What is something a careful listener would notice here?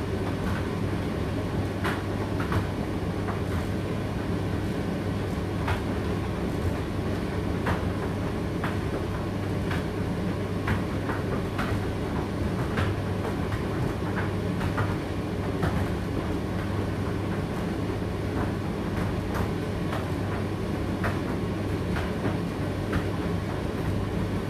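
A condenser tumble dryer hums as it runs a cycle.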